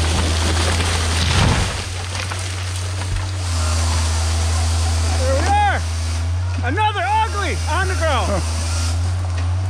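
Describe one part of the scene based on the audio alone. A chainsaw idles with a low steady rumble.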